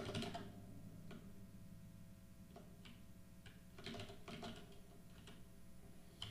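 Keys on a keyboard click.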